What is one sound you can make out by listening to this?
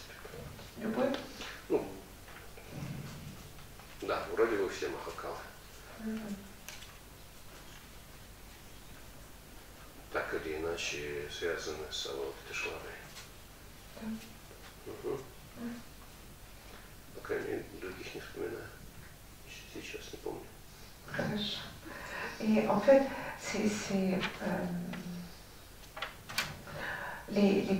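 A man speaks calmly and slowly into a microphone, with pauses.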